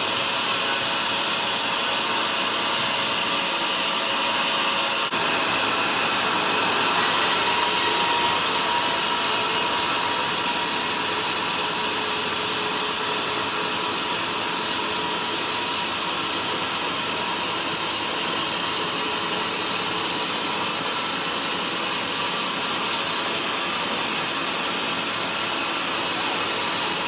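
A band saw whines steadily as it cuts through a large log.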